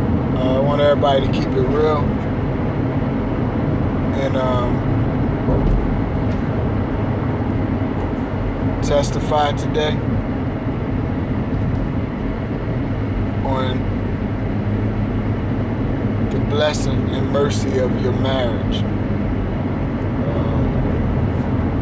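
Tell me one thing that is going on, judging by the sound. A man talks casually and close by, with pauses.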